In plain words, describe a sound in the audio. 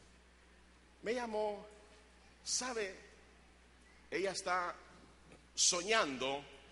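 A man preaches loudly and with passion through a microphone, in short bursts with pauses, in an echoing hall.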